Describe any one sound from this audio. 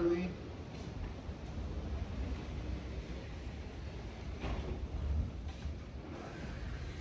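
A large glass door rumbles as it slides along its track.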